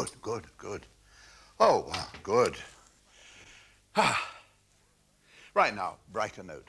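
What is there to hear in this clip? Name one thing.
An older man speaks with animation, close by.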